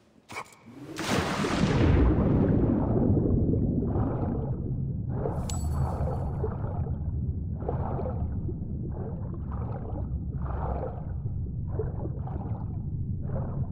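Water rushes and bubbles underwater.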